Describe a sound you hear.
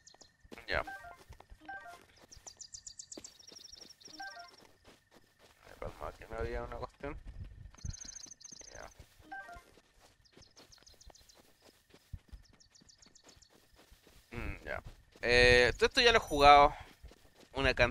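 Quick footsteps patter through grass.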